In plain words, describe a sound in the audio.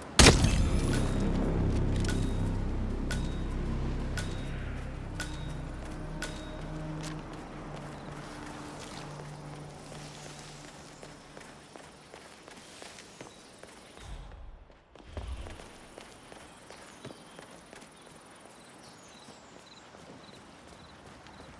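Footsteps crunch on the ground as a man walks.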